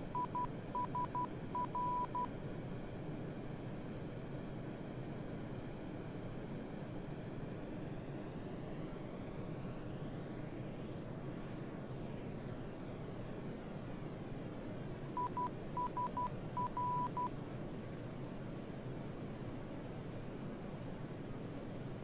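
Jet engines hum steadily in a low, even roar.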